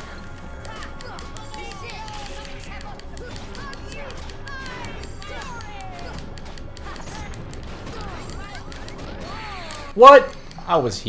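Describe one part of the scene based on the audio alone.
Sword swings and magic blasts of a video game battle whoosh and clash.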